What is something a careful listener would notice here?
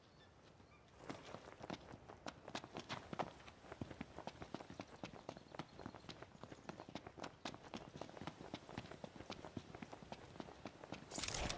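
Quick footsteps run over dry ground and grass.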